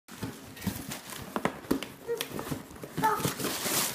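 Cardboard rustles and scrapes as a box is torn open.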